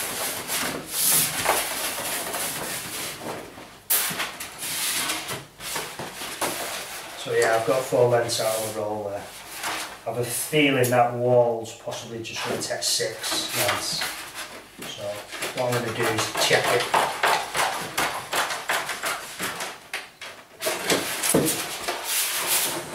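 Wallpaper rustles and crinkles as it is unrolled and handled on a table.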